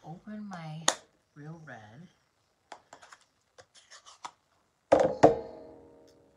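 A plastic case snaps and clicks open.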